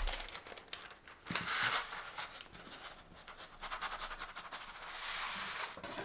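A metal ruler scrapes against paper.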